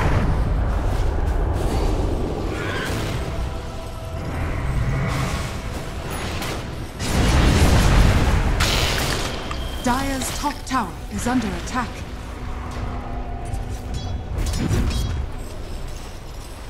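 Game spell blasts and weapon clashes burst loudly in quick succession.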